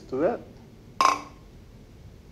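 Glass flasks clink together in a toast.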